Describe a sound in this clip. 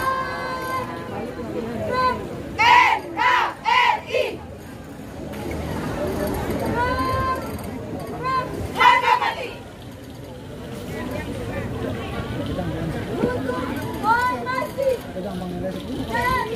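A young woman shouts drill commands loudly outdoors.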